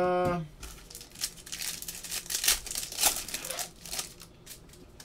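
Foil card packs crinkle and rip open.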